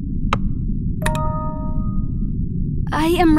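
A bright chime rings once and quickly fades.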